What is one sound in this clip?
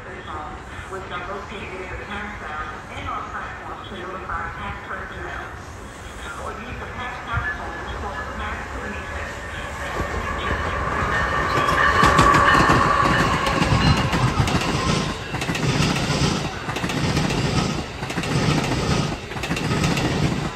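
A passenger train approaches and rumbles past close by, wheels clattering on the rails.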